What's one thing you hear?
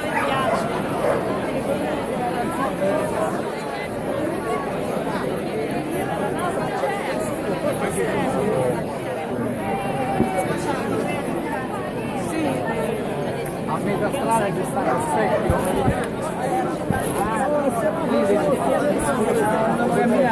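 A large crowd chatters and shouts outdoors, close by.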